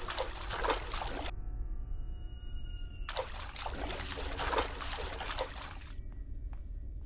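Footsteps shuffle quickly over a hard floor.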